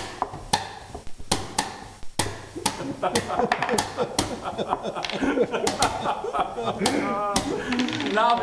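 A chess clock is slapped again and again.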